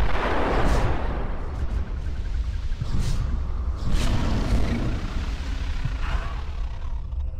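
Laser blasts whoosh and crackle in a video game.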